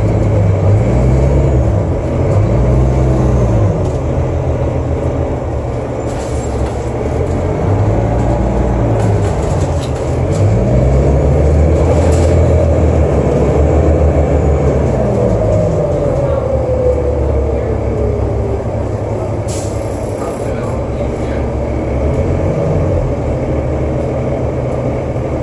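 A bus interior rattles and clatters over bumps.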